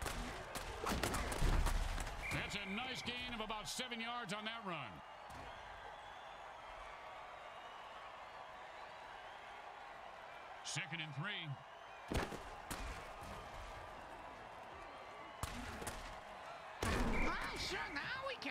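Armoured players crash together in heavy tackles.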